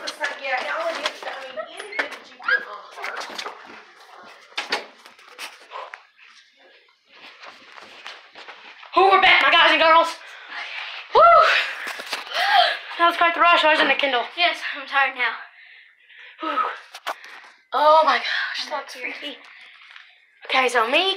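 A girl talks and laughs excitedly close by.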